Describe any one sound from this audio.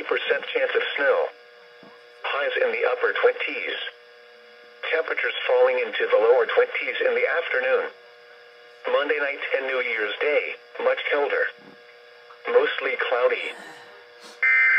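A recorded voice speaks through a small loudspeaker.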